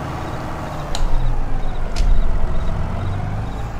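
A metal implement clanks and rattles behind a tractor.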